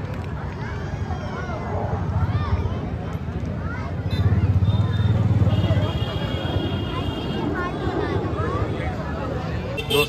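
A crowd of people chatter and call out nearby outdoors.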